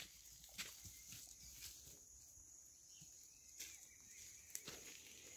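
Dogs' paws patter on dry leaves and grass.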